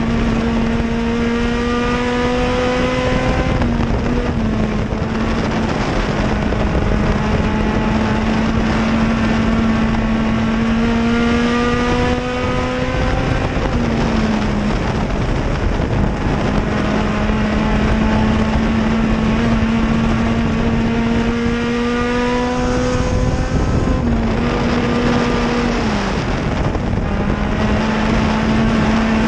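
A race car engine roars close by, its pitch rising and dropping through each lap.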